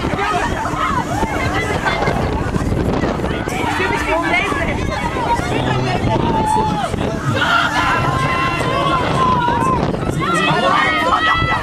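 Wind rushes past the microphone on a swinging fairground ride.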